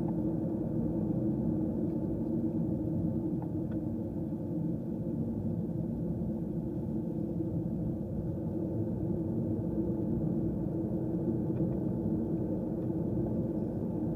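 Tyres rumble steadily on a road.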